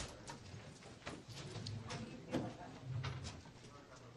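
A door swings shut with a thud.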